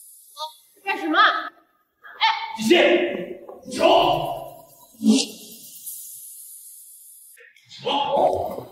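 A young woman speaks with alarm.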